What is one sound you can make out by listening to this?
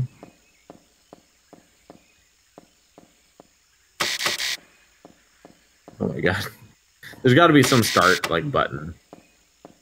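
Footsteps tap steadily on a hard metal floor.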